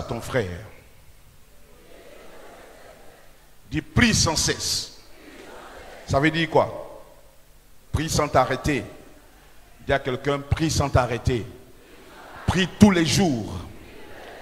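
A man preaches forcefully into a microphone in bursts, with echoing pauses in a large hall.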